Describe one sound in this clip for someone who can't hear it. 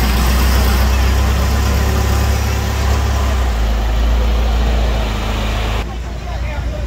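A loud, deep rumble drones close by.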